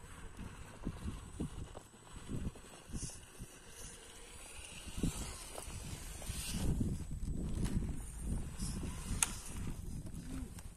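A small electric motor whirs as a toy truck climbs over rock.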